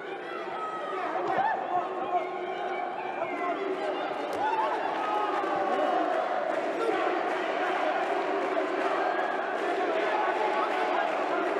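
A large crowd cheers and shouts loudly in an echoing arena.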